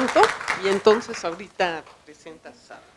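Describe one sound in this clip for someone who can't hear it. A woman speaks through a microphone in a large hall.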